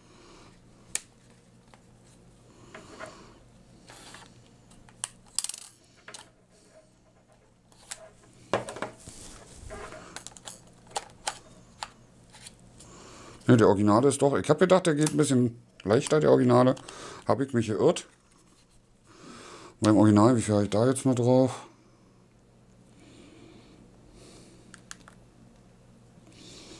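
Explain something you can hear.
Buttons on a handheld controller click and rattle softly.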